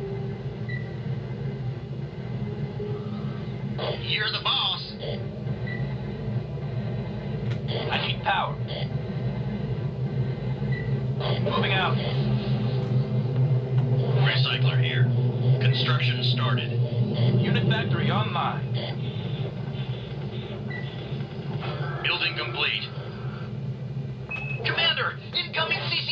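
A vehicle engine in a video game rumbles steadily through loudspeakers.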